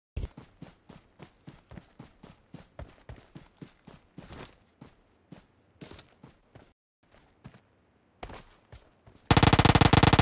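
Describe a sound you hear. Footsteps thud quickly on grass as a soldier runs.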